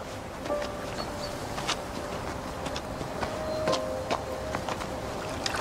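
Footsteps crunch and knock on loose stones.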